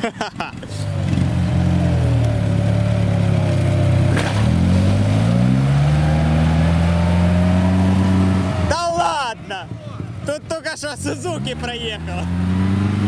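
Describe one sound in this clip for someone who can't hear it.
An off-road vehicle's engine revs and strains loudly.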